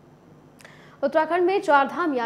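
A woman speaks clearly into a microphone, like a news presenter.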